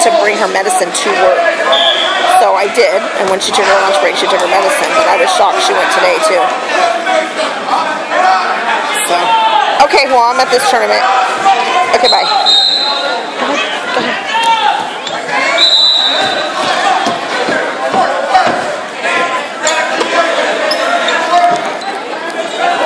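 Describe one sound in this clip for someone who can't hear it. Men shout instructions to wrestlers nearby.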